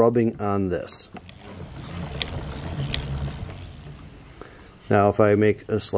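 A wooden wheel spins with a soft, low rumble.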